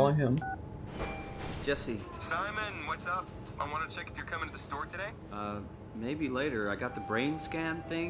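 A man speaks calmly over a phone line.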